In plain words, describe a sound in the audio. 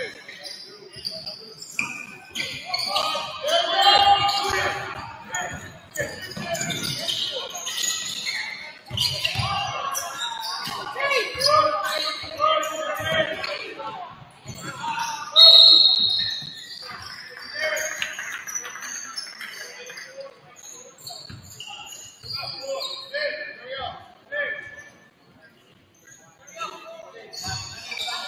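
Spectators talk and cheer from the stands.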